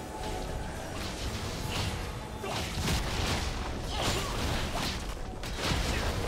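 Magic blasts whoosh and burst in quick succession.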